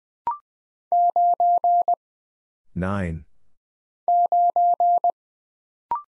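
A telegraph key beeps out short and long steady tones in quick bursts.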